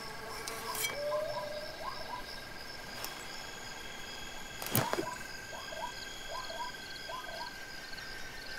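Birds chirp in the distance.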